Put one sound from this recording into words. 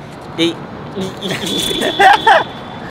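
Young men laugh close by.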